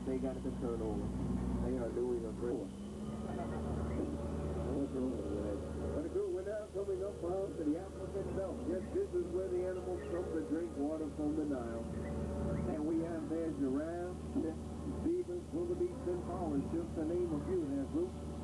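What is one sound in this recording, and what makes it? A man talks with animation over a loudspeaker.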